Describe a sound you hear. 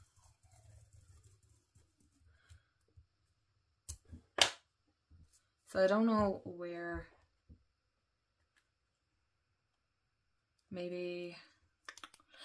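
Masking tape peels off a roll with a soft sticky rasp.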